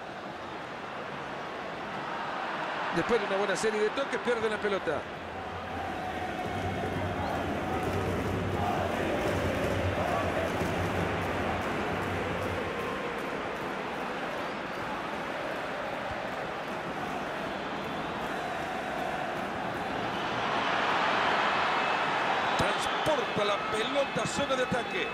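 A large stadium crowd roars and murmurs steadily.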